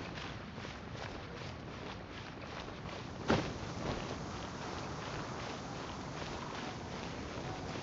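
Footsteps run on stone paving.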